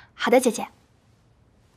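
A young woman speaks briefly and brightly, close by.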